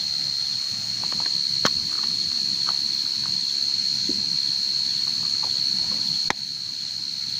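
Thin plastic crinkles and clicks in someone's hands.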